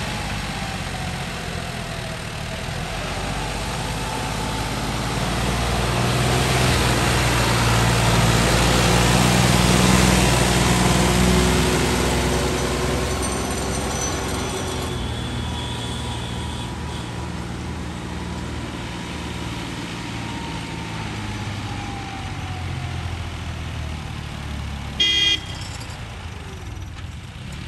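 A tractor drags a harrow scraping through dry soil.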